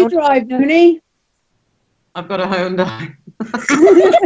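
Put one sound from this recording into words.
An elderly woman talks with animation over an online call.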